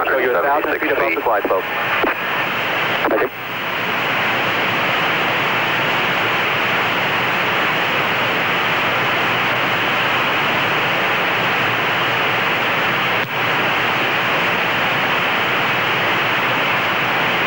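A jet engine roars steadily nearby.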